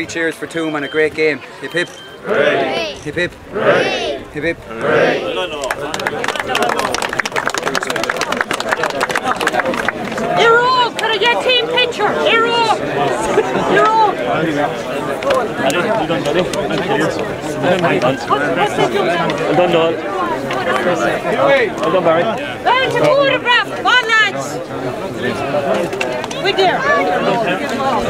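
A crowd of men and boys talk and cheer loudly outdoors, close by.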